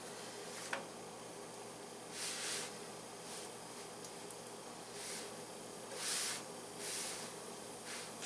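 Hands pat and press dough on a griddle with soft thumps.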